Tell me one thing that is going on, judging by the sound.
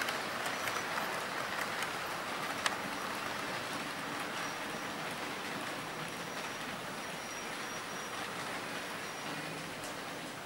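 A small model train rolls steadily along its track with a soft whirring rumble.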